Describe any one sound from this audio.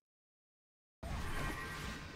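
A lightning bolt cracks with a sudden loud rumble.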